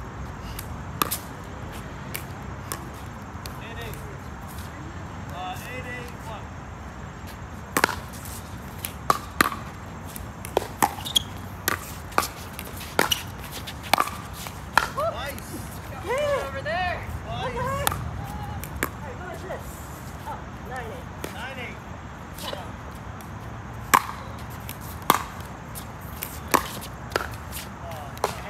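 Paddles knock a plastic ball back and forth with sharp hollow pops.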